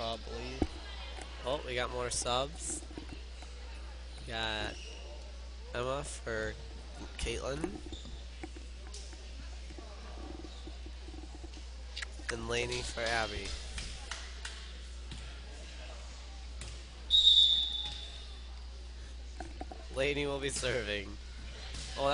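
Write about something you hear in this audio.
A volleyball is struck with a hollow thump.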